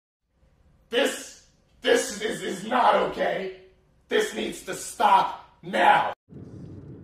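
A young man shouts in short bursts.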